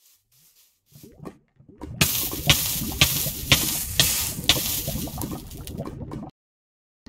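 Lava roars and crackles loudly.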